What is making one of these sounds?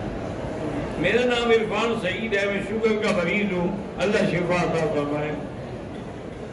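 An elderly man speaks slowly into a microphone, with some echo of a large hall.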